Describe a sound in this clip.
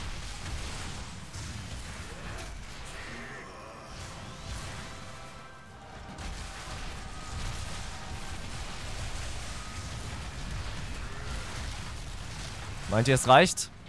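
Game combat sounds of blows and blasts rumble on throughout.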